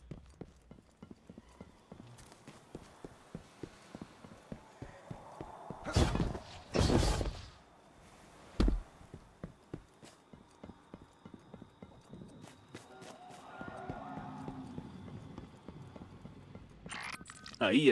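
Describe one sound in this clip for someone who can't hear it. Footsteps tap steadily on hard ground and metal.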